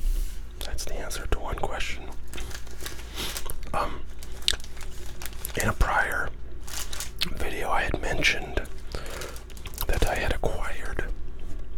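Plastic wrappers crinkle as packs are handled.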